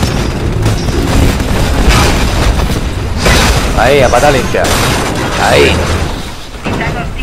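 Explosions boom and roar with fire.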